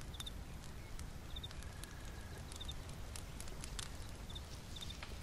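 A small fire crackles and pops softly.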